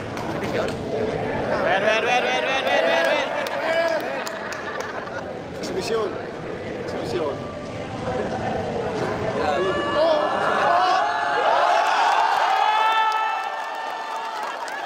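A crowd of men chatters loudly in an echoing hall.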